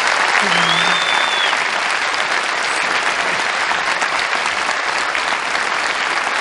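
A large audience applauds steadily in a big hall.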